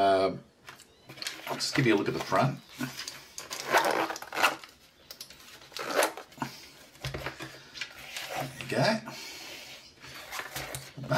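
Nylon fabric rustles and scrapes as hands handle a small pouch close by.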